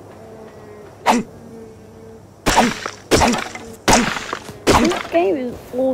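A stone tool strikes a tree trunk with sharp, repeated thuds.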